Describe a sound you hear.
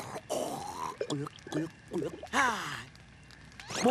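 A young man speaks with animation in a goofy voice.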